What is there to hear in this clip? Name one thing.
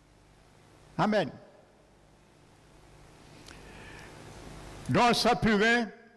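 A man speaks loudly through a microphone in an echoing hall, in short bursts.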